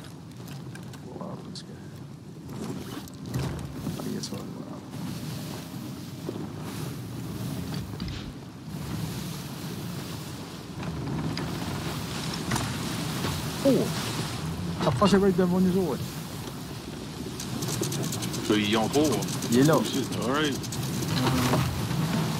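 Stormy sea waves crash and roar against a wooden ship.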